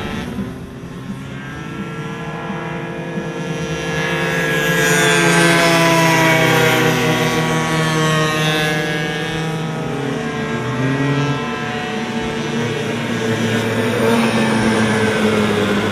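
Small motorbike engines whine and rev as they race past.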